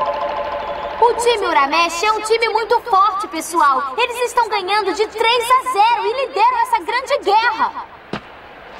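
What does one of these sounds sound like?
A girl announces with animation into a microphone, heard through loudspeakers.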